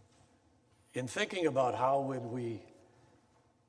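A man speaks into a microphone in a large hall.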